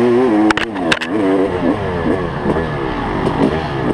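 Branches scrape against a dirt bike.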